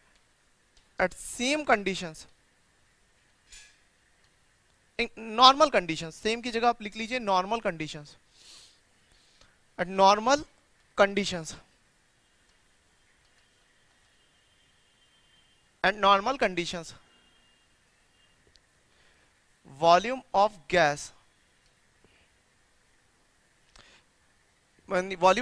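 A man speaks calmly in short bursts, close to a microphone, with pauses between phrases.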